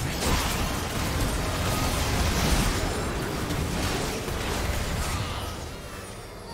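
Spell effects crackle and burst as game characters fight.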